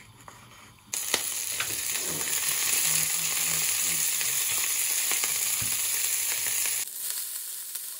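Greens sizzle loudly in a hot pan.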